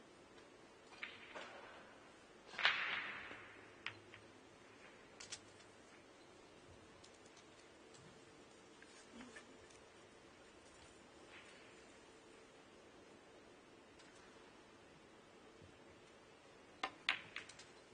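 A cue sharply taps a billiard ball.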